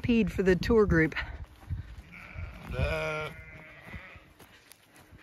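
Several sheep bleat loudly close by.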